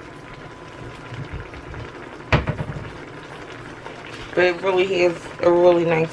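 Vegetables simmer and bubble softly in a pan.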